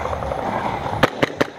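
Airsoft guns fire sharp clicks.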